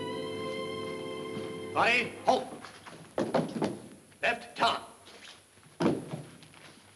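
Boys' boots tramp across a hard floor.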